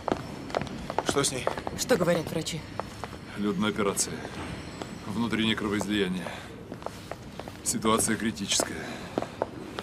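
A young man speaks.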